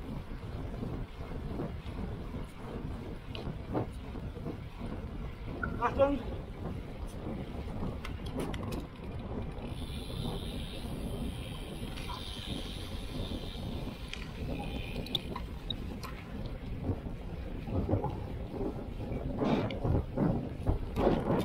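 Wind rushes steadily past a moving bicycle outdoors.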